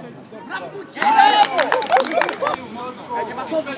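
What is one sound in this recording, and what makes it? A group of men cheer loudly nearby.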